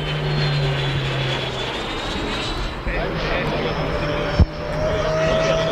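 A jet engine roars steadily overhead.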